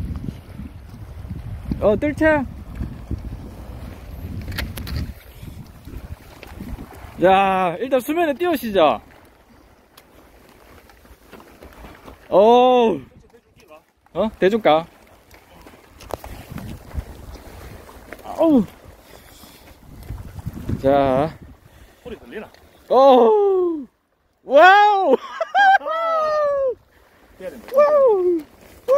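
Small waves lap gently against rocks.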